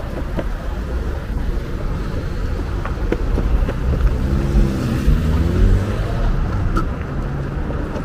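Cars drive past on a road nearby.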